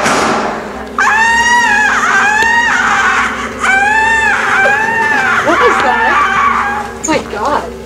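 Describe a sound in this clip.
Young women shout and cheer excitedly in a small room.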